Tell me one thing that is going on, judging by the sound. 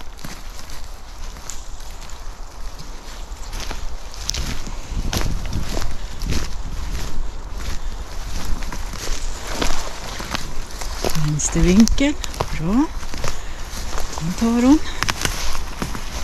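Footsteps crunch and rustle through undergrowth on a forest floor.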